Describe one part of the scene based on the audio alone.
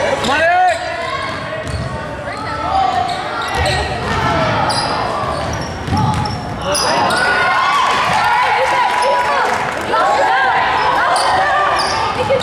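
Spectators shout and cheer nearby.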